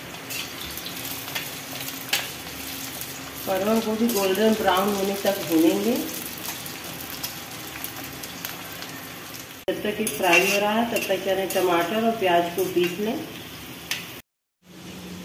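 Vegetables sizzle and crackle in hot oil.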